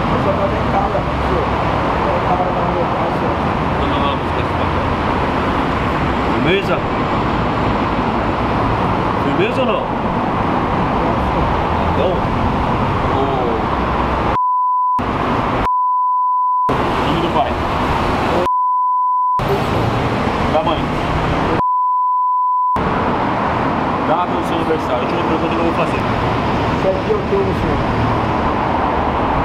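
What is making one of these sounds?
Cars pass by on a nearby road.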